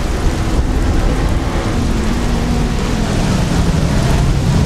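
A car engine revs and approaches.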